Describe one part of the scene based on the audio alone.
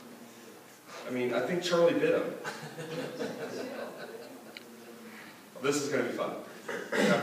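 A man speaks calmly to an audience in a room with a slight echo.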